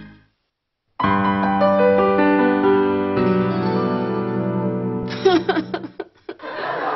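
A piano plays a few notes, ringing out.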